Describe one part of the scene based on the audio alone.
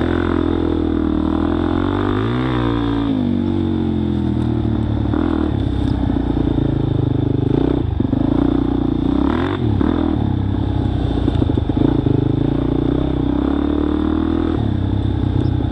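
A motorcycle engine revs up and down close by.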